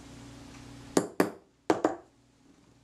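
A small hammer taps lightly on metal a few times.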